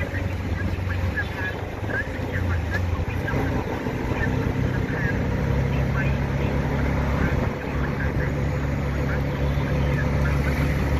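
A small motor vehicle's engine hums steadily while driving along a street.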